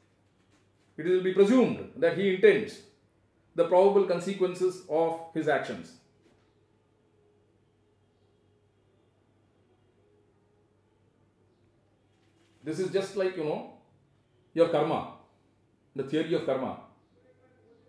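An elderly man speaks calmly and thoughtfully, close to a microphone, with long pauses.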